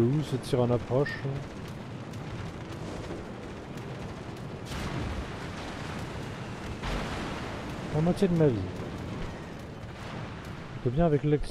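Ship guns boom and shells explode with a roar.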